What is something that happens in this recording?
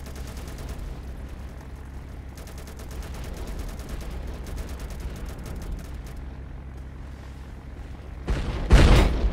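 A propeller plane engine drones steadily.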